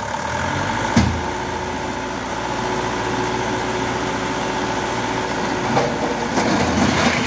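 A truck's hydraulic lift whines steadily as the dump bed rises.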